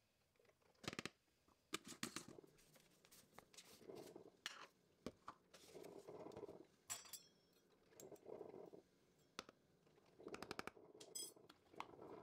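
A metal spoon scrapes and taps against containers and a bowl.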